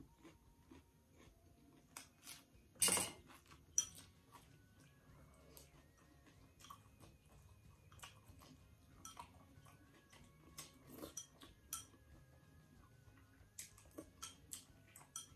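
A young woman slurps and chews food close to a microphone.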